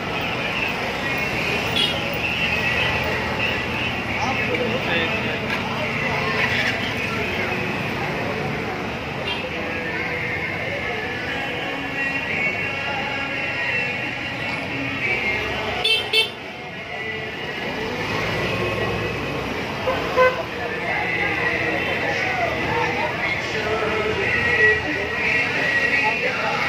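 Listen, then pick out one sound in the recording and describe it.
A busy street crowd murmurs with many voices outdoors.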